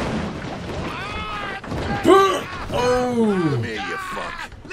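A man groans and cries out in pain.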